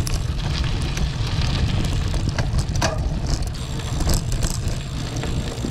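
Bicycle tyres rattle and crunch over a bumpy dirt path.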